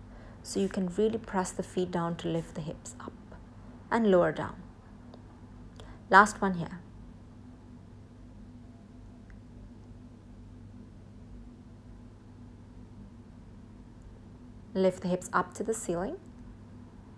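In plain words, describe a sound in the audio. A young woman speaks calmly and in short phrases, close by.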